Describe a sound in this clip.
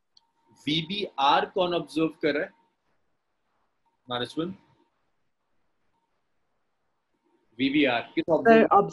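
A young man speaks calmly into a microphone, in short phrases with pauses.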